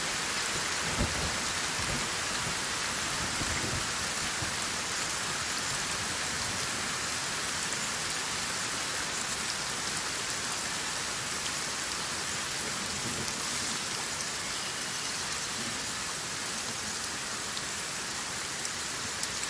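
Steady rain falls and patters all around.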